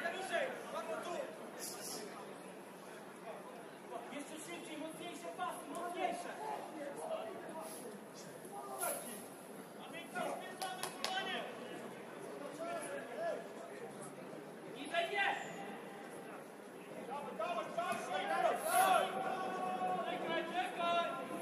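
Football players shout to each other across an outdoor pitch.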